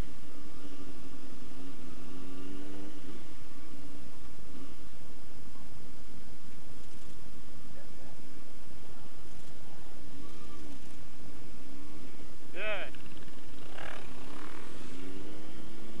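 A motorcycle engine idles close by.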